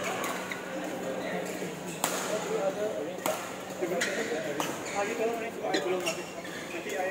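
Young men talk and call out across the hall.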